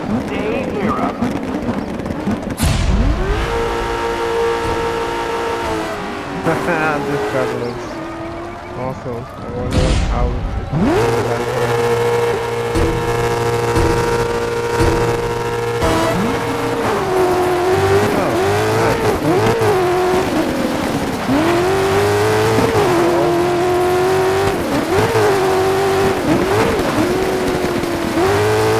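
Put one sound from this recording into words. A racing car engine revs loudly, its pitch climbing and dropping with gear changes.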